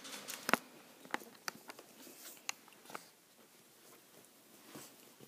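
Two small dogs scuffle and tussle on a blanket.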